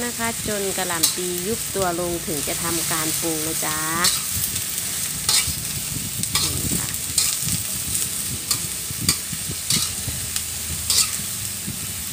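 A metal spatula scrapes and clanks against a wok.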